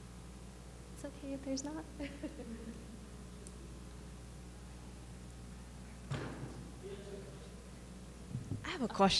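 A young woman speaks calmly into a microphone, heard through a loudspeaker.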